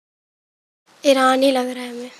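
A young woman answers aloud in a quiet voice.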